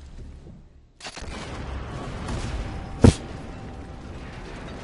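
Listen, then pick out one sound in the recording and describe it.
An explosion booms and roars loudly.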